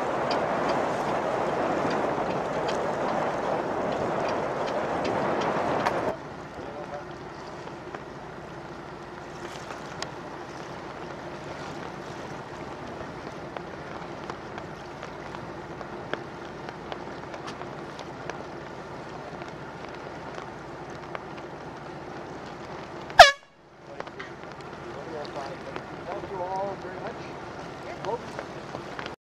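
Waves splash against a sailboat's hull.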